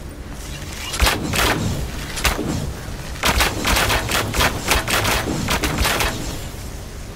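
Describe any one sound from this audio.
A fiery weapon fires in rapid bursts with sharp cracks.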